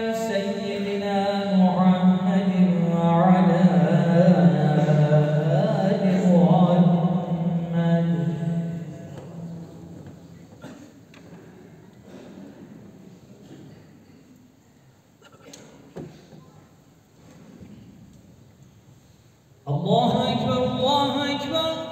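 A man chants prayers through a loudspeaker, echoing in a large hall.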